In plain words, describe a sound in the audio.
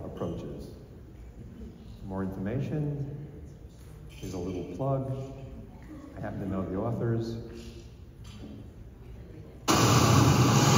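A man speaks calmly into a microphone over loudspeakers in a large hall.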